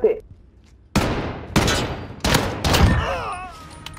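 Gunshots fire in quick succession.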